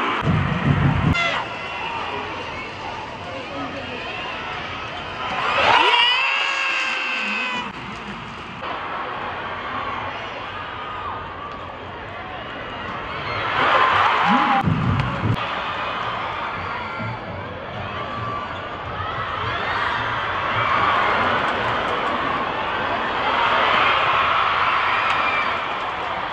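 A large crowd cheers and chatters throughout a big echoing arena.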